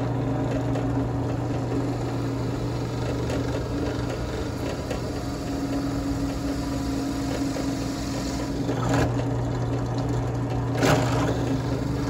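A drill press bit bores into wood.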